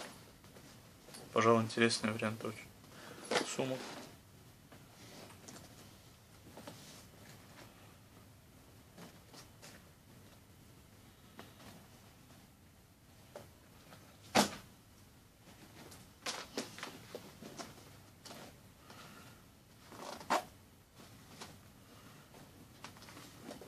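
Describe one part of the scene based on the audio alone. Metal buckles clink as a bag is handled.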